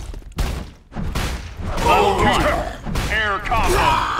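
Blasts of energy whoosh and crackle.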